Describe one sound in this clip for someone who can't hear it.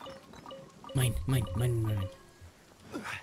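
A treasure chest clunks open with a sparkling jingle.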